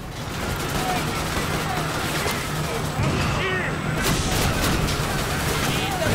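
Heavy guns fire in repeated sharp bursts.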